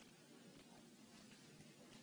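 Bare feet step softly on a hard floor.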